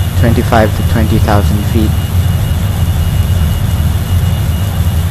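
A jet engine roars with a steady low rumble.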